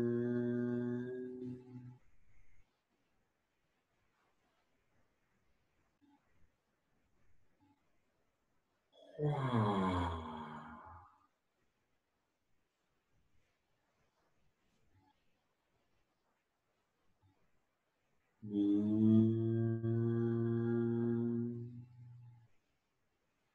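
A man chants long, drawn-out tones close by, with quiet pauses between them.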